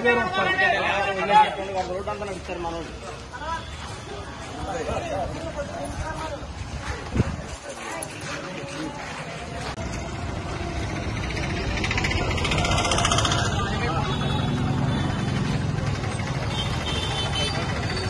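A crowd of men talk and murmur nearby outdoors.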